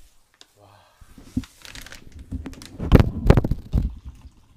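A package rustles and crinkles in a hand.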